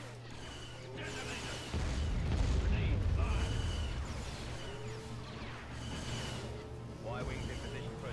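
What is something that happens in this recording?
Battle noises rumble and crackle.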